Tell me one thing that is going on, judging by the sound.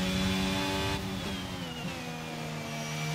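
A racing car engine drops in pitch as the car brakes for a corner.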